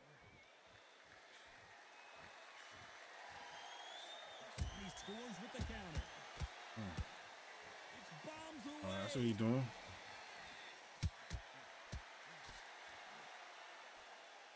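A crowd murmurs and cheers in the background.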